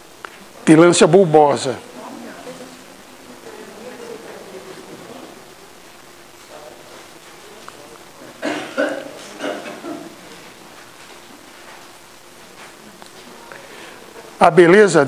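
An elderly man speaks calmly in an echoing hall, in short bursts with pauses.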